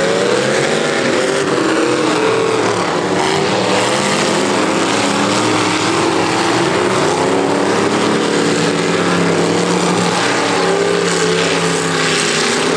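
Several car engines roar and rev loudly outdoors.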